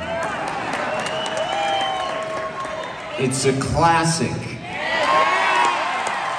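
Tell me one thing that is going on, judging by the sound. A large audience cheers and whistles.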